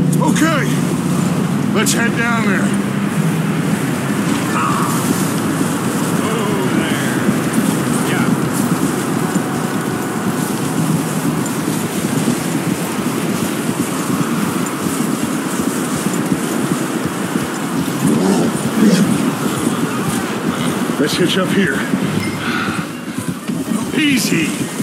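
Horses' hooves crunch steadily through deep snow.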